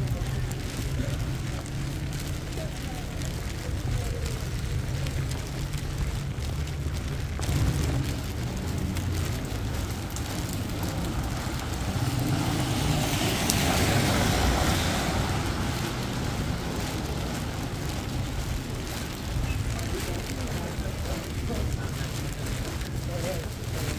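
Footsteps splash on a wet sidewalk.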